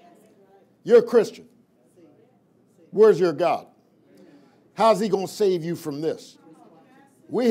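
A man speaks emphatically into a microphone in bursts, with pauses between phrases.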